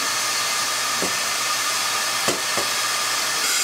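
A metal scoop clanks against a pot.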